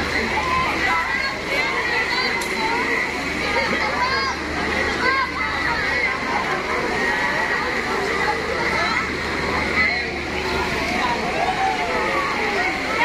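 Water splashes as children move about in a pool.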